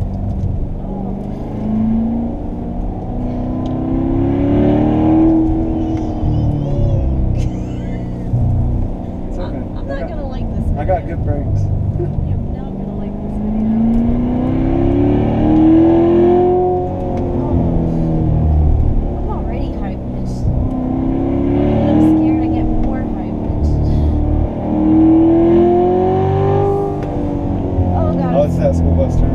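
A sports car engine roars close by, rising and falling as the car speeds up and slows down.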